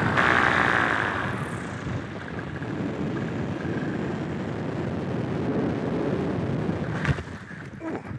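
Wind rushes and buffets loudly outdoors.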